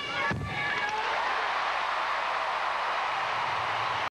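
A large crowd cheers and applauds in a big echoing arena.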